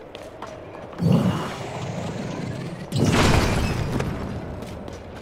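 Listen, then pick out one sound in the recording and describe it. A heavy rock crashes down with a deep rumble.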